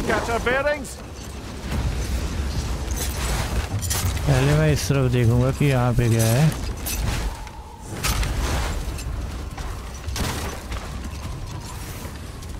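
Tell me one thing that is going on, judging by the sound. A sled slides and hisses over sand.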